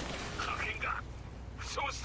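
Flames crackle from a burning wreck.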